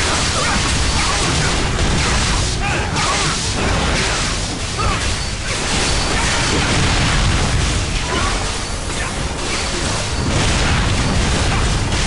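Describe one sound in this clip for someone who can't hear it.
Game battle effects clash and roar loudly and steadily.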